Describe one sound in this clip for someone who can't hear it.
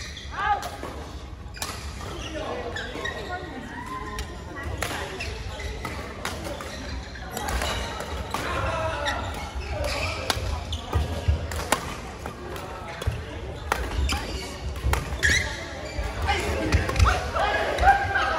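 Shoes squeak on a hard court floor.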